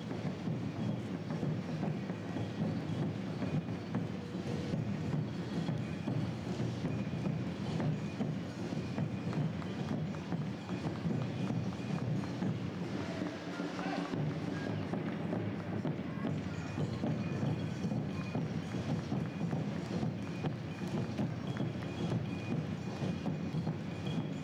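Runners' footsteps patter on the road.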